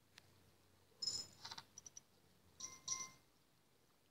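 Coins clink and jingle.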